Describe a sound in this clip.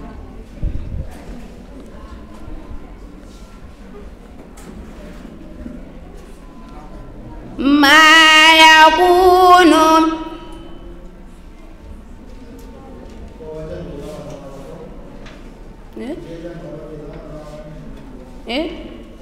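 A young girl recites in a chanting voice through a microphone, rising loud for a few seconds.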